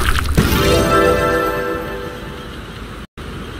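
A cheerful game jingle plays.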